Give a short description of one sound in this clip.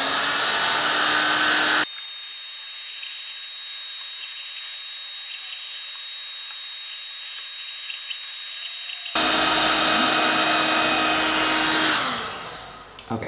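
A heat gun blows with a loud steady roar.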